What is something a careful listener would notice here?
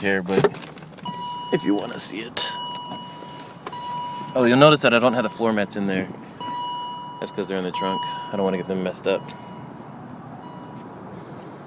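A car's door-open warning chime beeps steadily.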